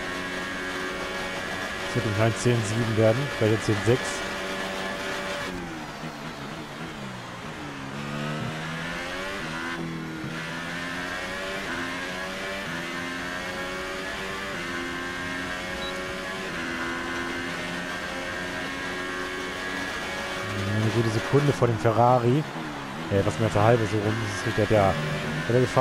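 A racing car engine roars steadily, its pitch climbing and dropping as gears shift.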